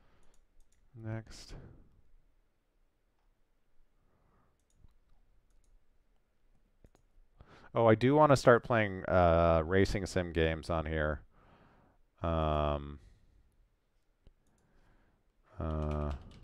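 A man speaks calmly and closely into a headset microphone.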